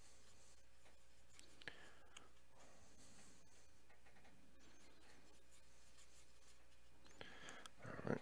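A paintbrush dabs and scrapes softly on a palette.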